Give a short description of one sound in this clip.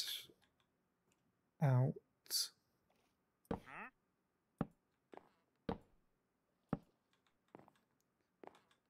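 A block is placed with a short wooden thud.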